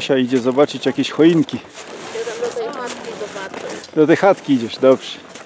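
Skis scrape over packed snow.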